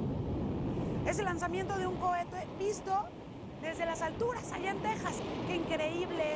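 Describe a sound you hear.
A woman speaks with animation into a studio microphone.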